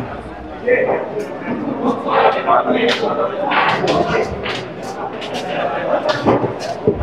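Pool balls clack together.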